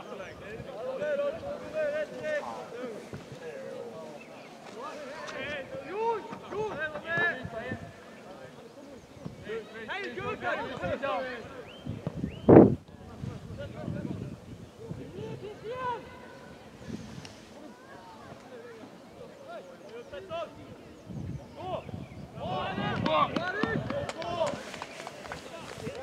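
Spectators on the sideline call out and cheer from a distance.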